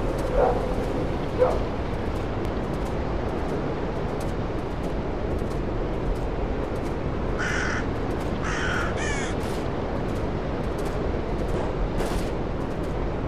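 Wind rushes steadily through forest trees.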